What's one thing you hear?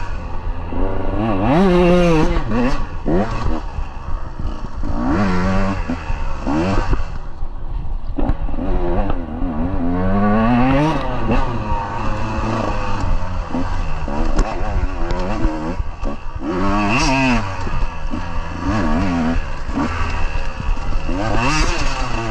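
Dry leaves and sticks crunch under tyres.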